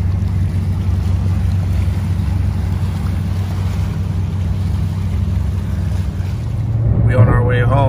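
A boat engine hums steadily as a boat passes on the water.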